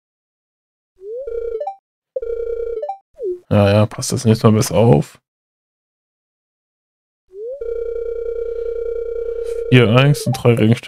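Short electronic tones beep from a video game.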